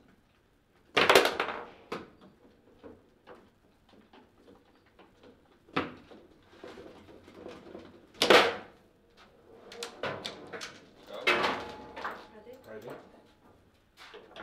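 Foosball rods clatter and the ball knocks sharply against the table.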